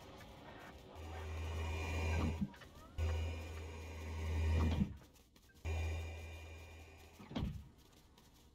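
Heavy sliding doors whoosh open with a low mechanical hum.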